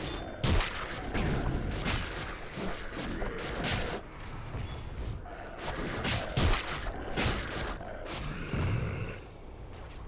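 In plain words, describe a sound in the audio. Weapons clash and strike in a game battle.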